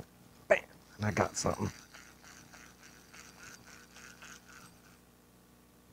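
A fishing reel clicks steadily as it is wound in.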